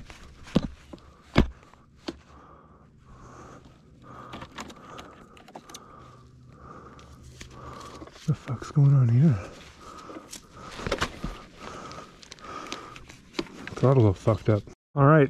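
Metal parts of a motorbike knock and rattle as it is handled.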